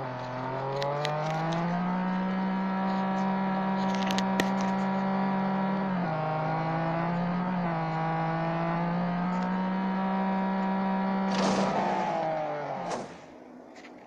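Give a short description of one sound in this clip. A race car engine roars and climbs through the gears.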